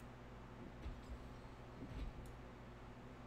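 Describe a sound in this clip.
A pickaxe strikes rock with dull thuds.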